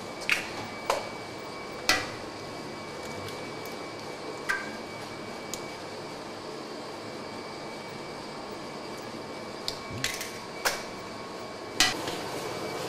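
Metal bowls clank and knock.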